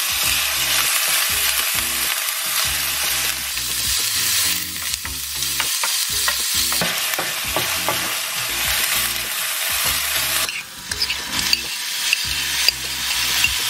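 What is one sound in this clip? Onions sizzle steadily in hot oil.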